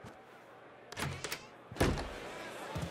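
A door clicks and swings open.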